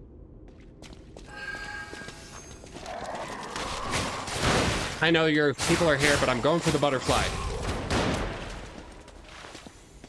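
Magical sparks crackle and burst during a fight.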